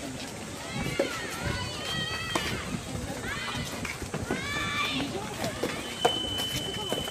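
A racket strikes a tennis ball with sharp pops.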